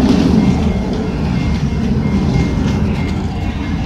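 A large bird flaps its wings close by.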